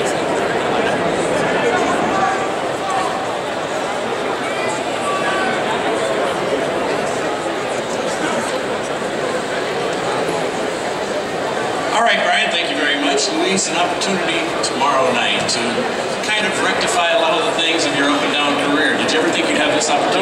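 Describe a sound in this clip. Men talk close by in a noisy crowd.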